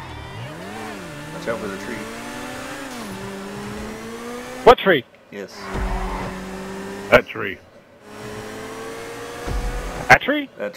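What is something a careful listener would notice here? A car engine revs high and shifts gears as a car speeds along.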